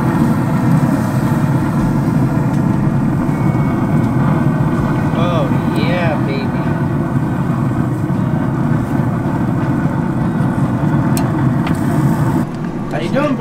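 Food sizzles and hisses on a hot grill.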